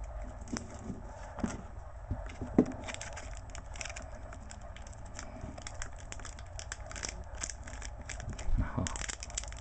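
Plastic card sleeves crinkle and rustle between fingers.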